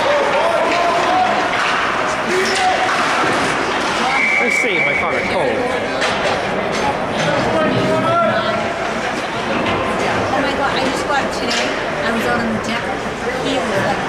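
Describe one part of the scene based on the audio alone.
Young players shout to each other far off across an echoing rink.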